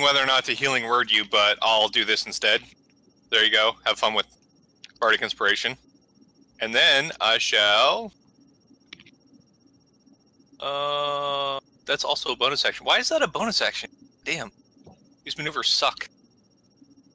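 Men talk with animation over an online call, heard through headset microphones.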